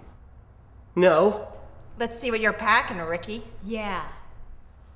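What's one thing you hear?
A woman speaks calmly from nearby.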